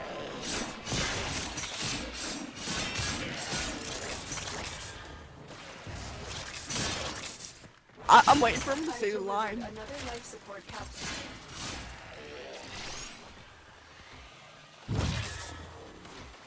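Energy blasts whoosh and crackle.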